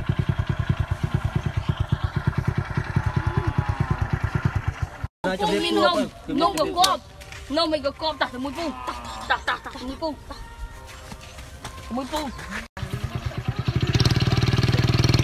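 A motorbike engine idles with a steady putter close by.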